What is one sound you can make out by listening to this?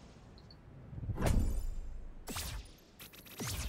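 A bright magical chime sparkles as an item is picked up.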